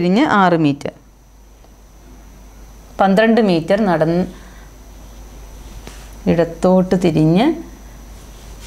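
A woman speaks calmly and clearly into a close microphone, in short phrases with pauses.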